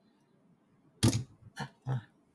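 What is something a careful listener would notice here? Plastic parts click as hands handle them.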